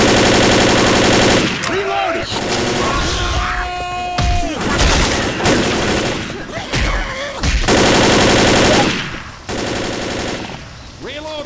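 Automatic rifle fire rattles in rapid bursts.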